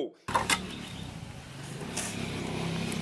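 A metal brick mould knocks against the ground.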